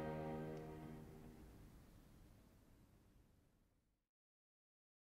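A string ensemble holds a final chord that rings out in a large echoing hall and fades away.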